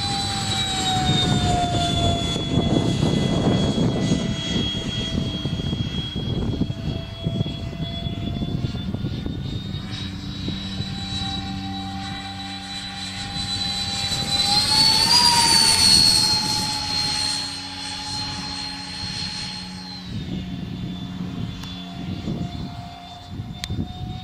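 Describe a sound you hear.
A propeller plane drones overhead, its engine pitch rising and falling as it passes.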